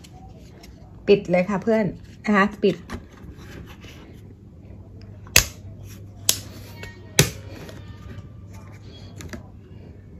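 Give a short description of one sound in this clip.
A plastic lid clicks and crinkles as hands work it loose.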